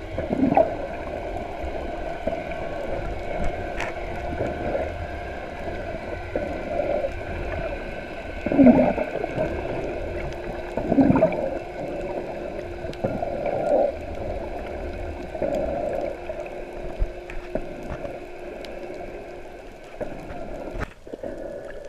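A snorkeler breathes loudly through a snorkel, heard muffled underwater.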